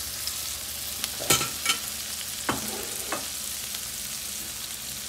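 Oil sizzles steadily in a hot frying pan.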